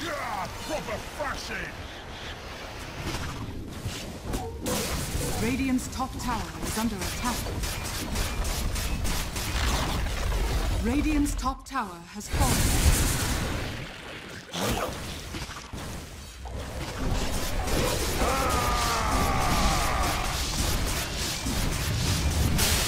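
Weapons clash and strike repeatedly in a video game fight.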